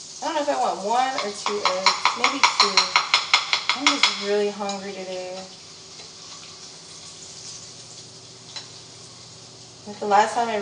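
A spatula scrapes and clicks against a frying pan.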